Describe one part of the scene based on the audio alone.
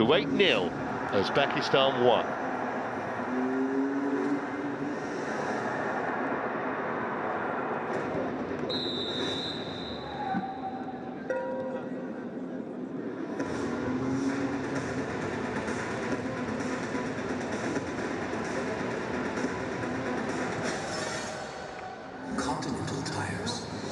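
A large stadium crowd murmurs and cheers, echoing.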